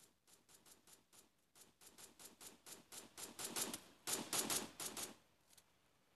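Quick footsteps run over the ground.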